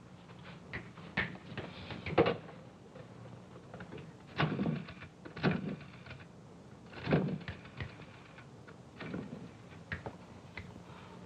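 Objects knock and clatter as a man rummages through a drawer.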